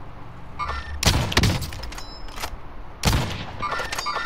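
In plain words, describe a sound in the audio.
A sniper rifle fires loud, sharp shots.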